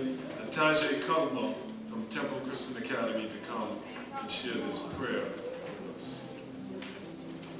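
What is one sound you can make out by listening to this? An older man speaks through a microphone in an echoing hall.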